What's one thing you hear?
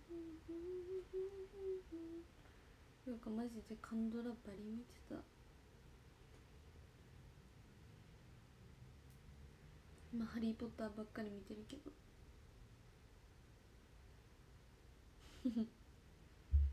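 A young woman speaks softly and casually close by, in short bursts.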